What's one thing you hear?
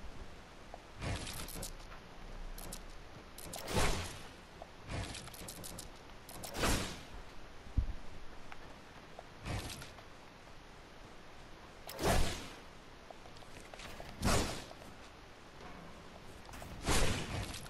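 Building pieces snap into place with short, sharp clicks.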